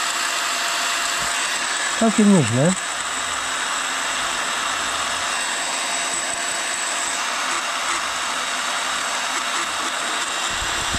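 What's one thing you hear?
A small handheld power tool whirs steadily.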